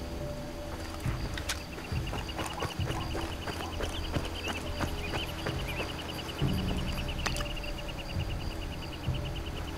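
Footsteps crunch on dry dirt at a steady walking pace.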